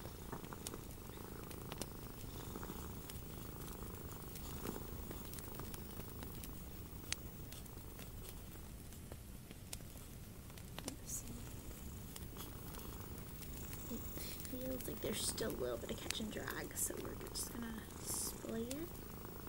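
Paper rustles and crinkles as it is folded by hand.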